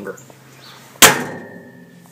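A microwave oven door slams shut.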